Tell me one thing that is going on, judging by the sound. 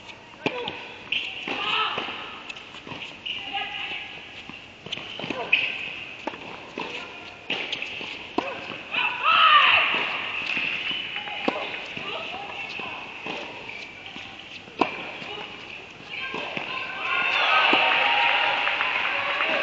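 Tennis balls pop off rackets with sharp echoing hits.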